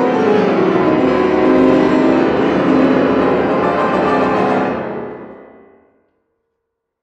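A grand piano plays loudly, then its last chord rings out and fades in a large echoing hall.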